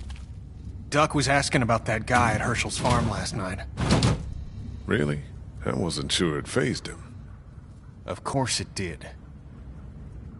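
A man speaks with worry, close by.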